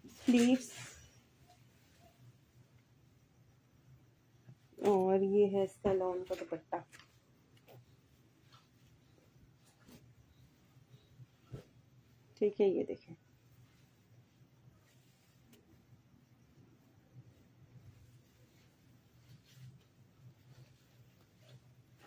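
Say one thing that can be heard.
Fabric rustles as cloth is unfolded and shaken out.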